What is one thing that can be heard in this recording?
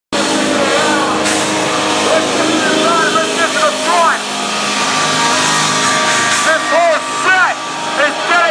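Drums are beaten hard.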